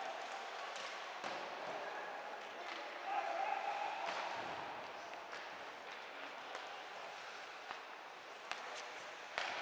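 Skates scrape across the ice in a large echoing arena.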